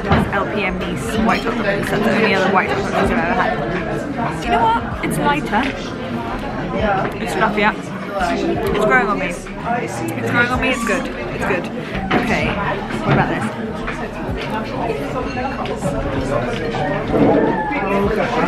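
Voices murmur in the background of a busy room.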